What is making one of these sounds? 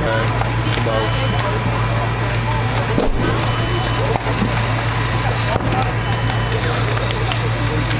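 A water jet hisses as it sprays onto a burning roof.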